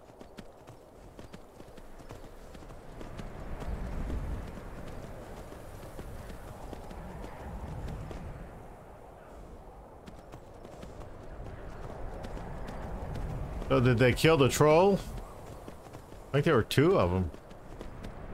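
Horse hooves thud steadily on snow.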